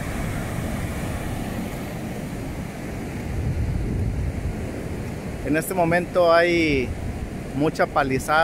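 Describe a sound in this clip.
Shallow waves wash softly up the sand.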